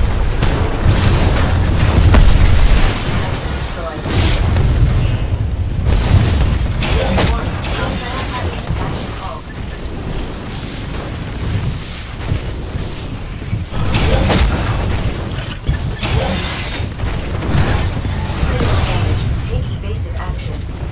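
Explosions rumble and crash.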